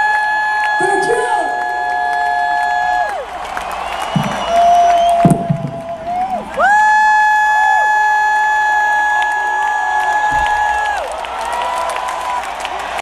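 A large crowd cheers and screams in a big echoing arena.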